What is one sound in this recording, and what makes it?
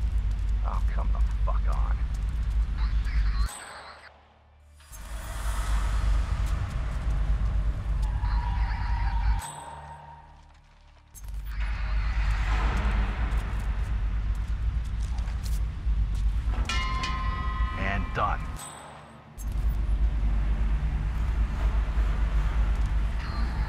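Soft footsteps shuffle on a concrete floor.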